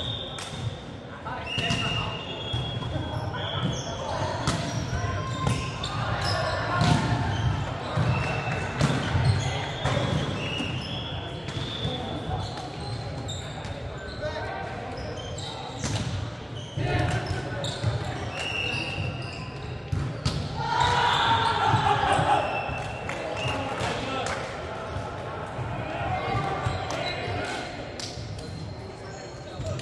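Young men call out and talk during play in a large echoing hall.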